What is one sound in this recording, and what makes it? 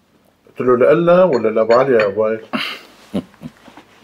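A cup clinks onto a saucer.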